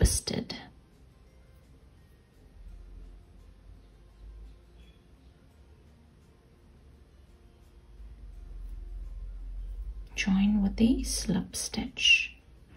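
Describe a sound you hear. Yarn rustles softly as a crochet hook pulls it through loops.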